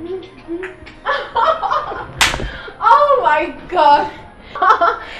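A woman laughs loudly and happily close by.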